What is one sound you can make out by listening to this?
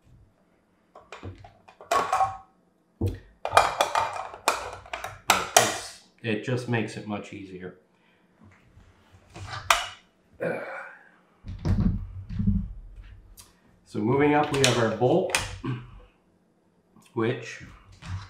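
Metal parts of a rifle click and clack as a man handles them.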